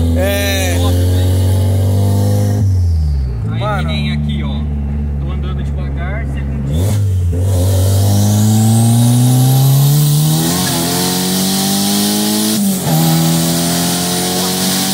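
A car engine revs up hard and drops in pitch with each gear change.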